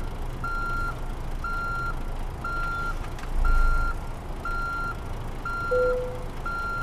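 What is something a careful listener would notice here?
A truck's reversing alarm beeps steadily about once a second.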